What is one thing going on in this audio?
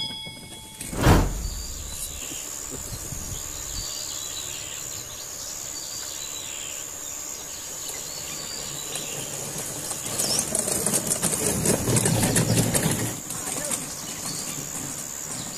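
A small electric motor whines steadily as a toy truck drives along a dirt track.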